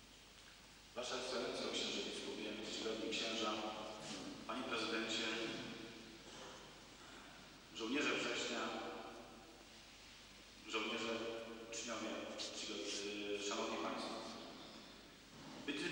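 A middle-aged man speaks calmly into a microphone in a large echoing hall.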